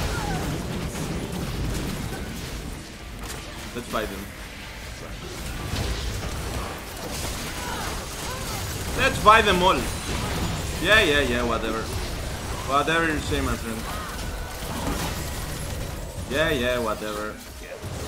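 Spell blasts and sword hits clash in a fantasy battle.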